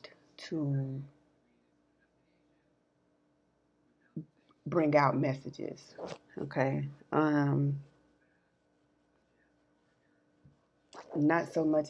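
A young woman speaks emotionally close to the microphone, in short bursts with long pauses.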